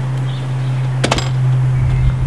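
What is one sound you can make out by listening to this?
A front door shuts with a thud.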